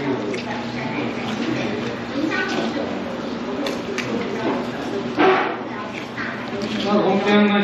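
A spoon scrapes and taps inside a paper cup.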